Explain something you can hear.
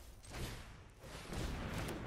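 A magical whoosh sweeps past as a spell is cast.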